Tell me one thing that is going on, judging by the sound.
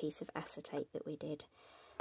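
A scoring tool scrapes along a sheet of card.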